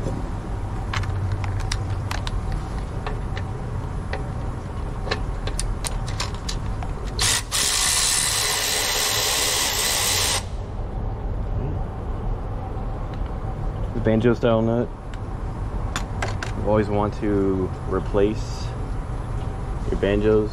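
A wrench clicks and taps against metal engine parts.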